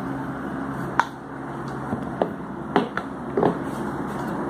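A metal pump housing knocks and clanks against a hard surface.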